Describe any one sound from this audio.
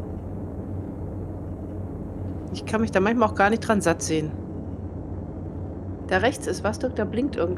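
A spacecraft engine hums low and steady.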